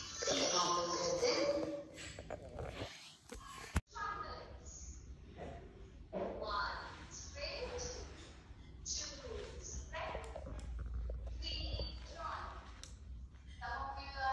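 A young girl talks calmly close to the microphone.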